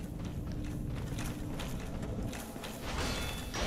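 Heavy footsteps thud on stone with clanking armor.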